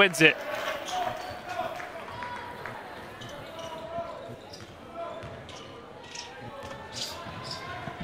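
A basketball bounces on a hardwood floor as it is dribbled.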